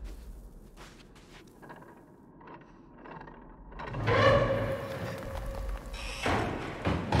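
A heavy metal door scrapes and groans as it is pushed.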